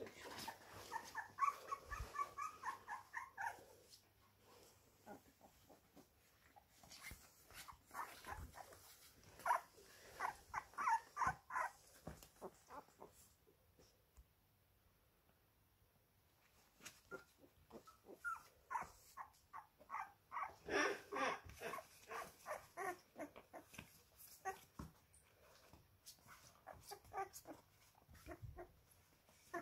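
Puppies whimper and squeak softly up close.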